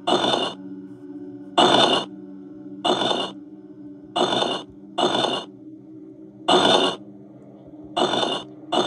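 A video game plays a steady low drone.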